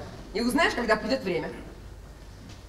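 A man speaks loudly and with feeling, briefly.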